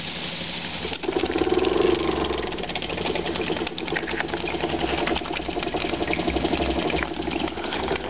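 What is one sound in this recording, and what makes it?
A small engine chuffs and clatters rapidly and steadily.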